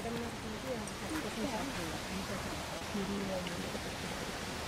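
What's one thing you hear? A woman talks calmly nearby.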